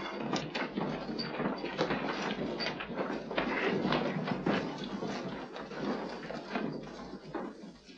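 A crowd of men and women murmur and chatter close by.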